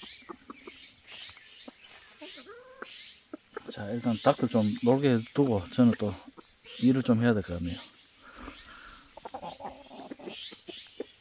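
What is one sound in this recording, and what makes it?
Chickens' feet rustle and crunch dry leaves.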